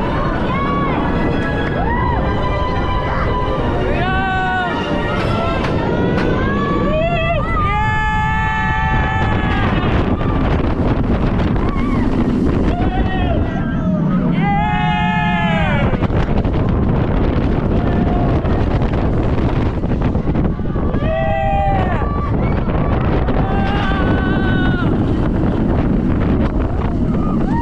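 A roller coaster rumbles and rattles along its track.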